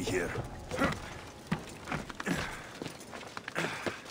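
Hands and feet scrape and thud while climbing a stone wall.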